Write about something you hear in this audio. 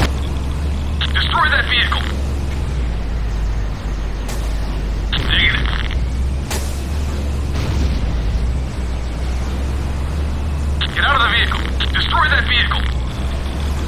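Energy blasts crackle and zap.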